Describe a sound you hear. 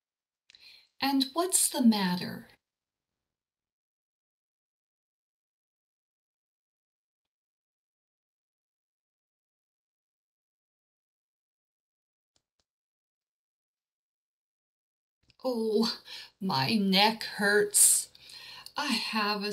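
A woman speaks clearly and calmly into a microphone.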